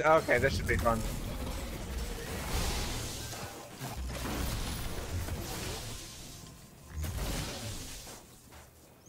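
Energy blasts crackle and boom in a fight.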